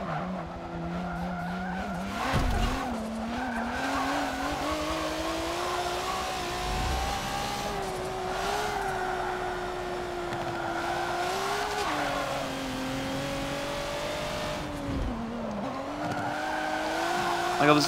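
Tyres screech as a car slides through corners.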